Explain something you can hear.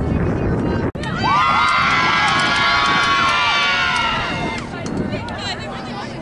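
Young women cheer and shout excitedly.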